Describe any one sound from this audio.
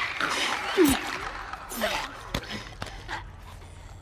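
A body thuds onto a floor.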